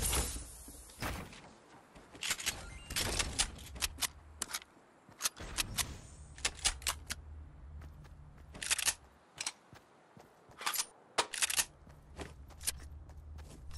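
Wooden walls clatter as they are built.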